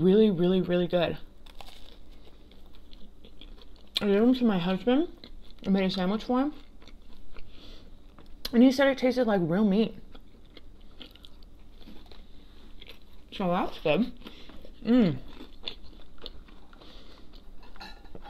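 A young woman chews and crunches food close to a microphone.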